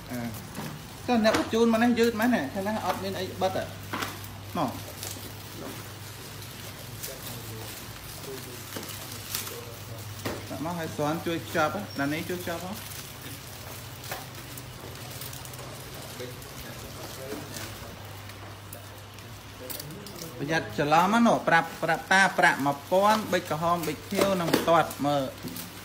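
Men talk nearby in a room.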